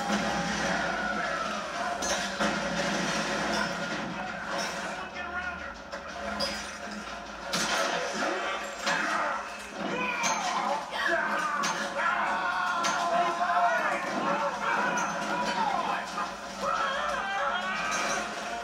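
A television plays nearby in a room.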